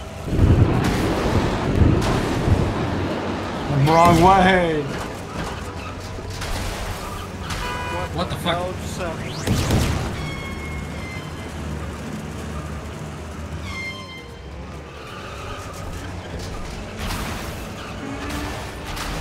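Small toy car engines buzz and whine as they race.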